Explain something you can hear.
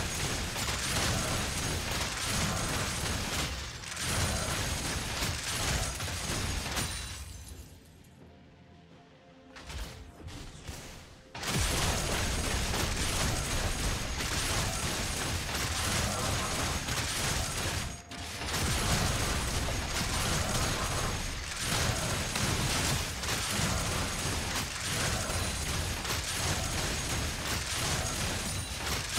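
Magic blasts and impacts crackle in a busy fight.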